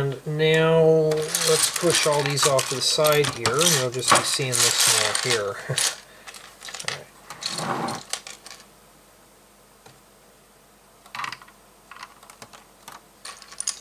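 Plastic toy bricks clatter and click as hands handle them.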